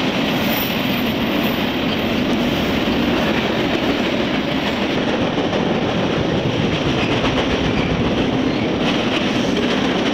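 A long freight train rumbles and clatters past close by.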